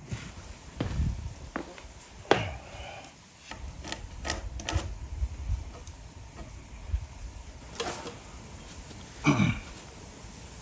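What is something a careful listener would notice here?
Wooden beams knock and scrape against a hard floor.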